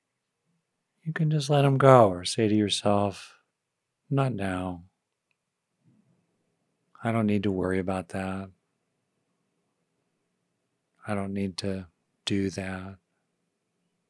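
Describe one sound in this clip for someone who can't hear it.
An older man speaks calmly and slowly into a close microphone, with long pauses.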